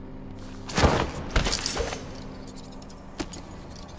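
A heavy body thumps onto a hard floor.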